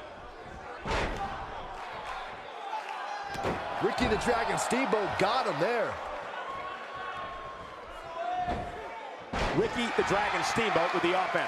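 Bodies slam hard onto a wrestling ring mat.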